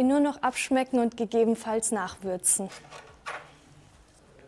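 A young woman speaks brightly and clearly into a microphone.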